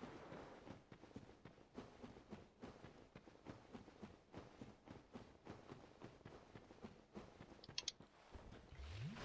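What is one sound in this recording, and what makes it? Armoured footsteps crunch steadily on stone.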